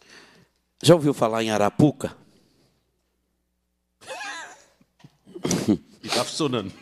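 A man speaks formally into a microphone, in short phrases with pauses.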